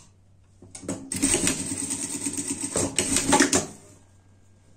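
A sewing machine runs in a quick, steady whirr.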